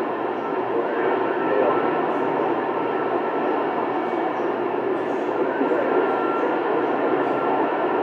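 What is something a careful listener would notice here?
Radio static hisses and crackles steadily from a receiver's loudspeaker.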